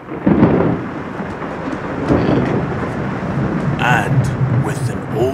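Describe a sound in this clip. Rain patters steadily against windows.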